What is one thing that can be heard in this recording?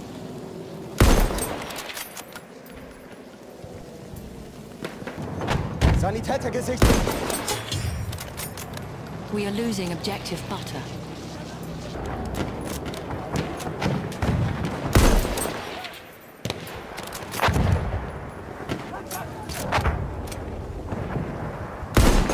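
A rifle fires loud single shots that echo outdoors.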